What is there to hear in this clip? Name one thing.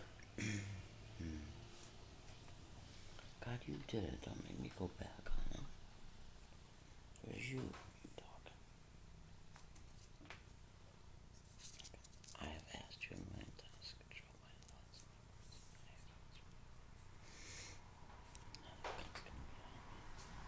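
An older woman speaks quietly and close by, with pauses.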